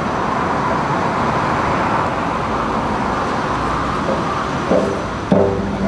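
A cello plays low notes.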